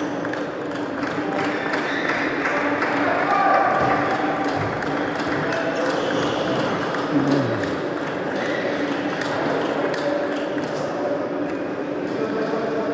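A table tennis ball knocks quickly back and forth off paddles and the table.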